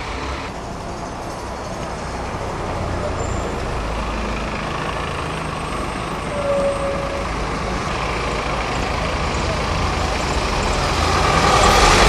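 A bus engine idles and rumbles nearby.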